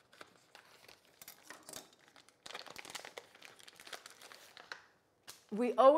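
Paper rustles and crinkles as it is rolled and unrolled.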